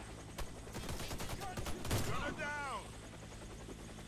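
A rifle fires a single shot.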